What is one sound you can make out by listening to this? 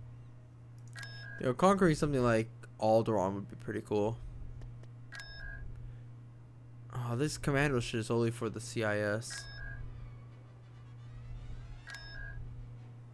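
Short electronic chimes sound now and then.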